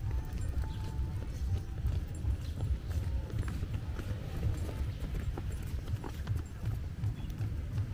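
Runners' footsteps patter on a path.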